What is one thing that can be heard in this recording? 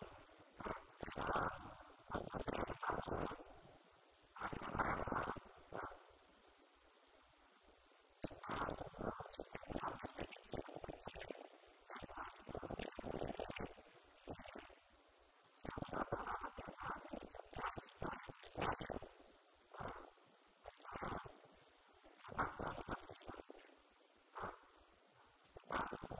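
An elderly man speaks calmly into a microphone over loudspeakers, with pauses.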